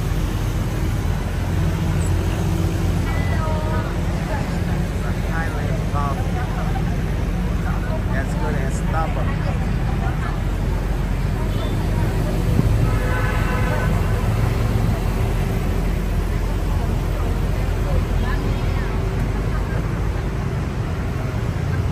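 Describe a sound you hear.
A vehicle's engine rumbles low and steady as it drives along.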